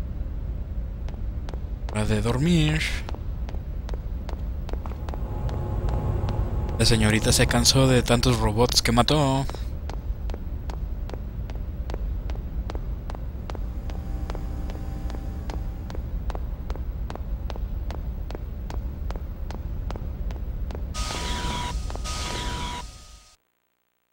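Quick footsteps clank on a metal floor.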